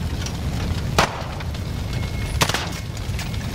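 A rifle fires two sharp shots.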